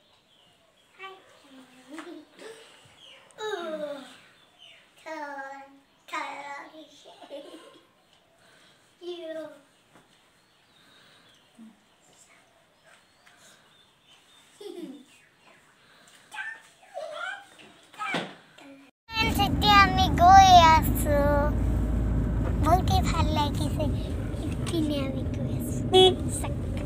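A young girl laughs and talks close by.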